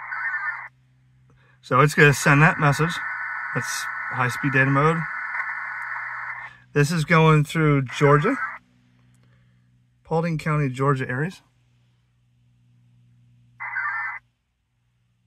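Digital radio data signals warble in short bursts from a loudspeaker.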